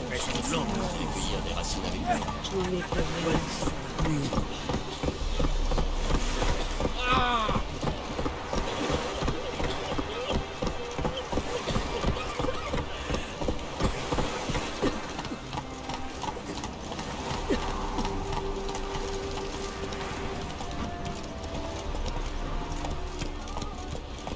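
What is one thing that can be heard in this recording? A horse's hooves clop steadily on wooden planks and dirt.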